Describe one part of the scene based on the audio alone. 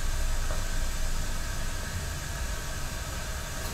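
A wooden ladle knocks lightly against an iron kettle.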